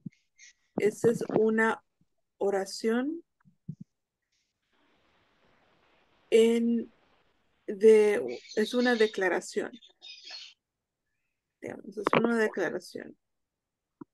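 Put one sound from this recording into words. A woman speaks slowly and clearly through an online call, reading out short lines with pauses.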